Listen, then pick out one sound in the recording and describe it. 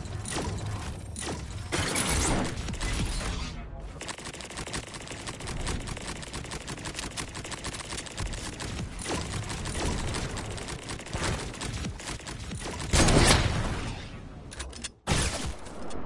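Wooden building pieces clatter into place in quick succession.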